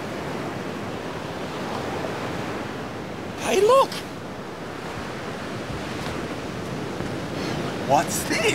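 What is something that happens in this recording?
Surf washes steadily onto a beach.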